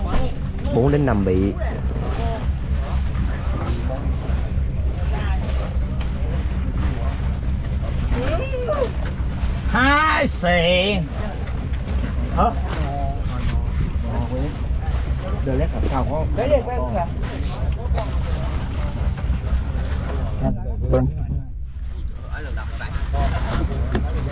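Men talk close by with animation.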